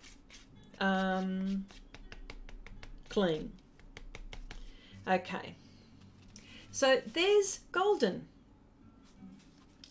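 A plastic spoon scrapes and stirs thick paste.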